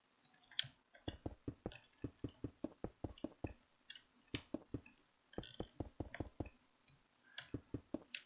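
Blocks are placed in quick, soft taps.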